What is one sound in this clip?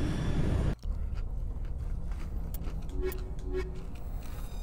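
Short electronic beeps sound as a menu selection changes.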